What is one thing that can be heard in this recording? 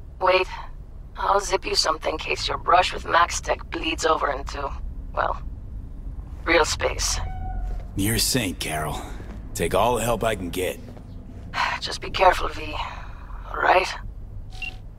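A woman speaks calmly over a call.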